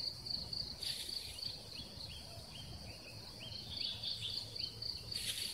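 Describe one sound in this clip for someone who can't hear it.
A man pulls weeds and scrapes at the soil nearby.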